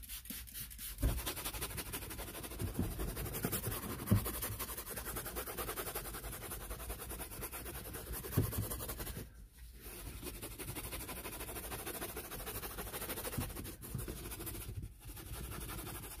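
A stiff brush scrubs a carpet with a rough rasping sound.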